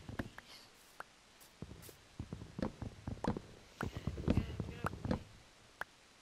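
An axe chops wood with repeated quick knocks.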